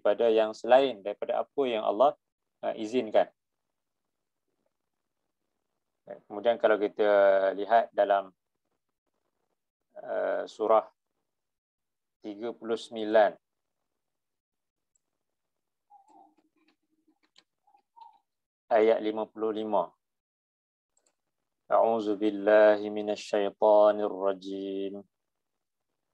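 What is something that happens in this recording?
A man recites in a melodic chanting voice, close to a microphone.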